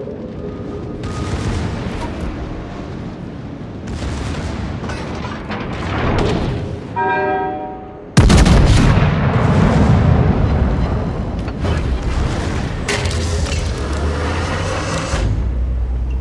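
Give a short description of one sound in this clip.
Explosions thud and crackle in bursts.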